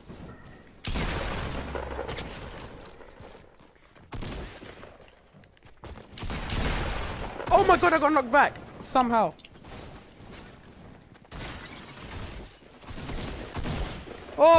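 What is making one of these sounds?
Building pieces thud and clatter into place in a video game.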